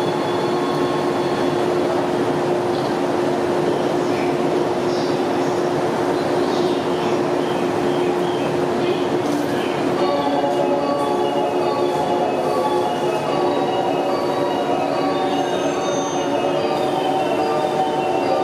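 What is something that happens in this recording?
A train's motors hum steadily.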